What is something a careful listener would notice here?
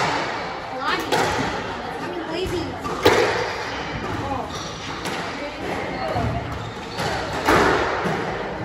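A squash ball is struck by a racket and smacks off the walls of an echoing court.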